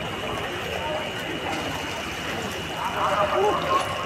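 Water splashes.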